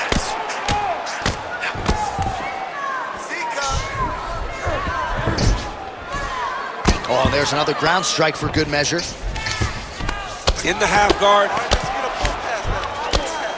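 Fists thud against a body in quick, heavy blows.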